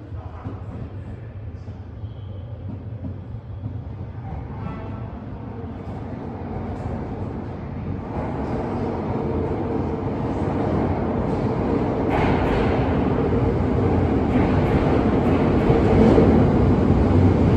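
A train approaches, growing steadily louder as it rumbles in.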